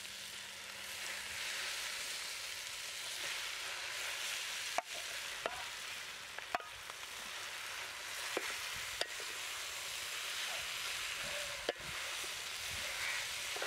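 Meat pieces plop wetly into a bowl of vegetables.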